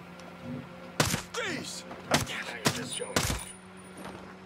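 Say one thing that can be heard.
Gunshots ring out in quick bursts, close by.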